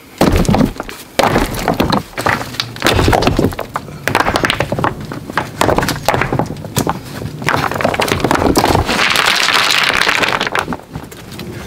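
Loose rocks clatter and scrape underfoot.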